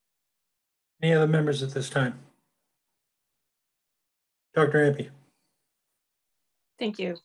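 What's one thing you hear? An elderly man speaks calmly over an online call, in short bursts.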